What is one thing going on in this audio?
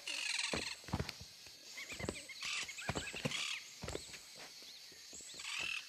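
Quick footsteps slap on paving stones.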